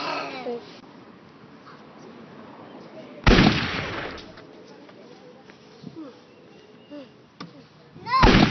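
A young boy talks nearby, outdoors.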